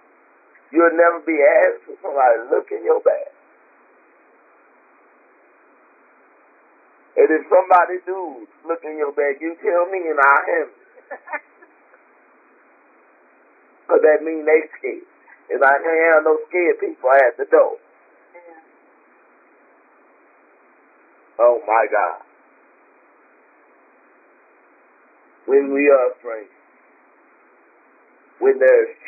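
A woman speaks calmly through a narrow-sounding microphone, in phrases with long pauses.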